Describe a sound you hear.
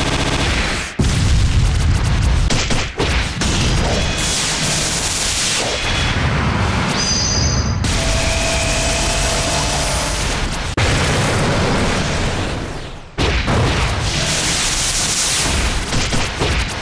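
Energy blasts whoosh and crackle in quick bursts.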